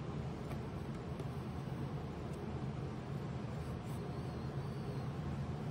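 A paper tissue rustles as it wipes a metal surface.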